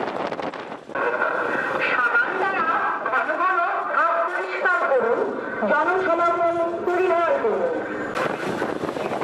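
A man's voice makes an announcement through a loudspeaker.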